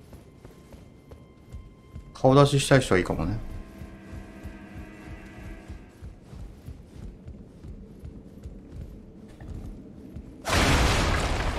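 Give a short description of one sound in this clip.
Footsteps tread on hard floors.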